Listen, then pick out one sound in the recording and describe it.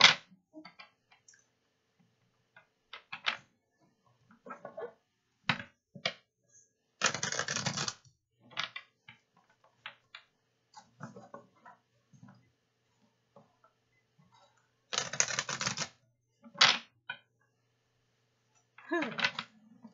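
A woman shuffles a deck of cards close by.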